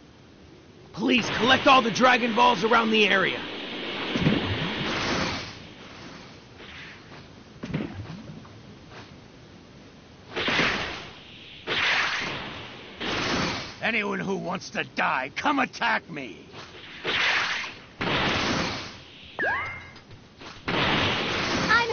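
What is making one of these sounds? An energy aura roars and whooshes as a fighter flies fast.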